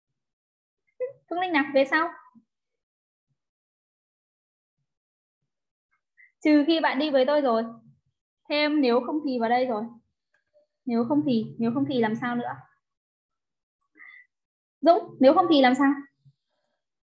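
A young woman speaks calmly through a microphone in short phrases with pauses.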